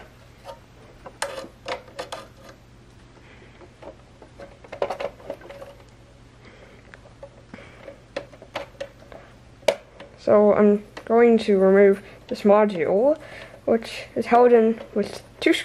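A screwdriver clicks and scrapes against metal screws.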